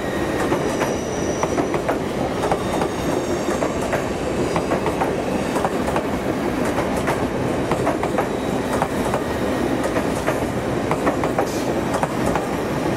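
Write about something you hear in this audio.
A passenger train rushes past at speed with a steady loud roar.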